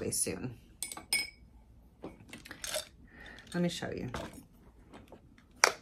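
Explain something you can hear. Makeup brushes rustle and clatter together.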